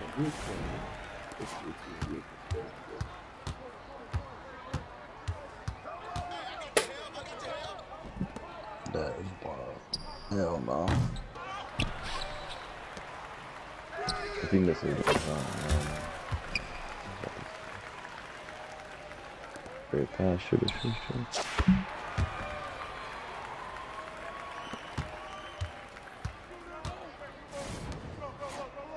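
Sneakers squeak on a basketball court.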